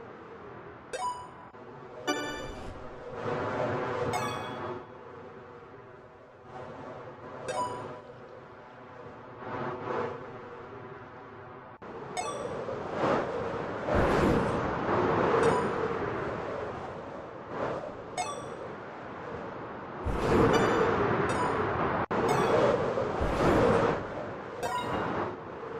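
A bright chime rings out several times.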